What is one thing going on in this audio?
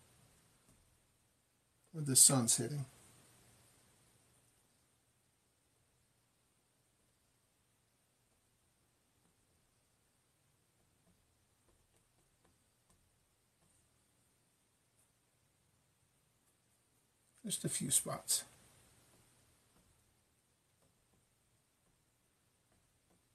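A paintbrush dabs and taps softly on canvas.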